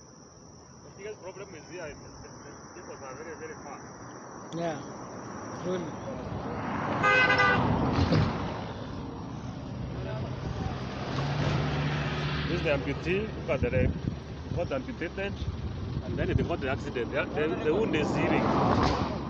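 A man talks nearby outdoors.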